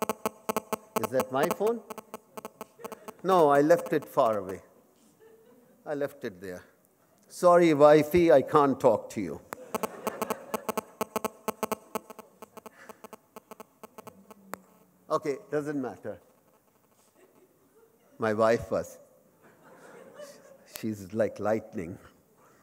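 A middle-aged man speaks slowly into a microphone, heard through loudspeakers in a large hall.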